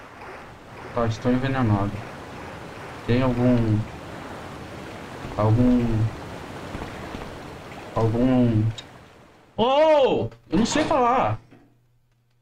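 A man speaks with animation close to a microphone, in short bursts.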